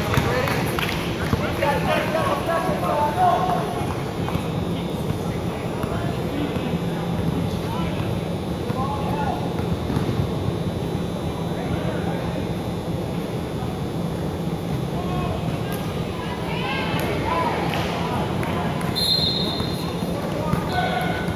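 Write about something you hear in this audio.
A crowd of people talks and shouts across a large echoing hall.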